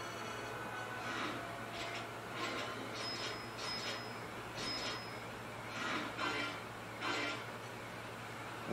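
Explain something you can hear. Short electronic chimes ring in quick succession.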